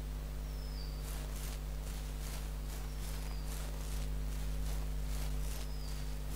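Footsteps tread on grass at a steady pace.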